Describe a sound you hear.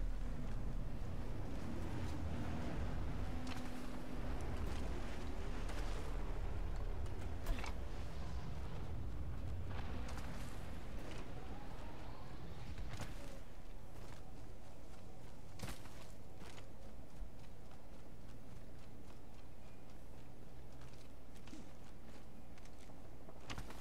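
Footsteps crunch quickly over snow and grass.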